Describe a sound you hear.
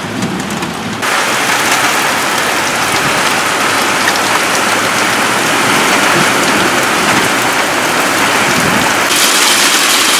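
Heavy rain pours down outdoors with a steady roar.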